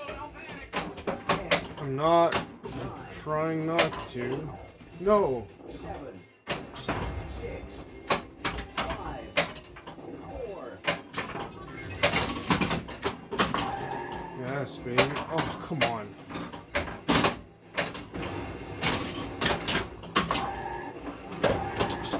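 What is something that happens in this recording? A pinball clatters and knocks against bumpers and flippers.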